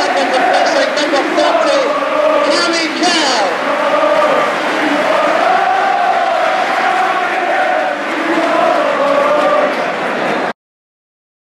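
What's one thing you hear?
A large crowd chants and sings loudly in a stadium.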